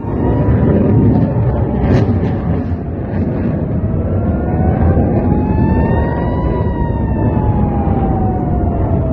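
Distant explosions boom and rumble.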